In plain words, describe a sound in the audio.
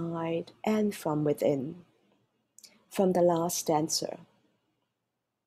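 A man reads aloud calmly, close to a microphone.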